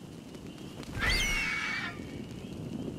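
A large bird lets out a shrill, wavering screech.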